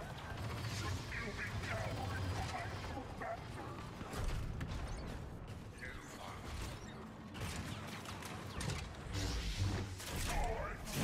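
Blaster shots zap and crackle.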